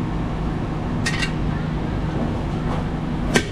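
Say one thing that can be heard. A small hammer taps sharply on a thin metal dish.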